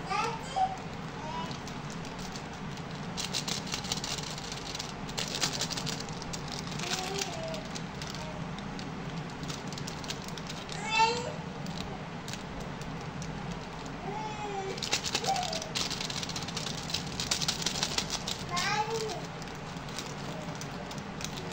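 Plastic wrappers crinkle and rustle as hands handle them.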